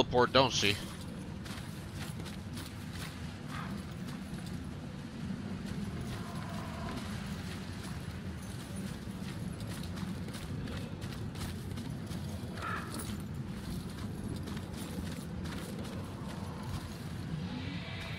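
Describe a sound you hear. Footsteps crunch slowly on gravel.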